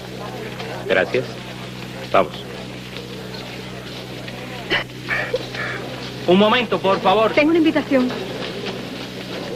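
A crowd murmurs.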